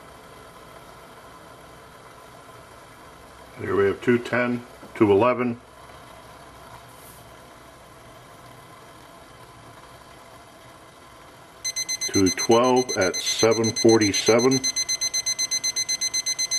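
A small stove flame burns with a faint, steady hiss.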